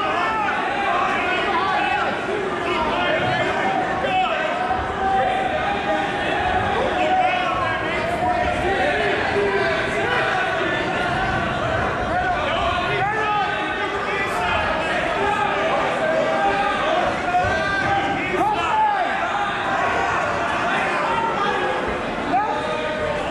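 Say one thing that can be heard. Wrestlers thud and scuffle on a mat.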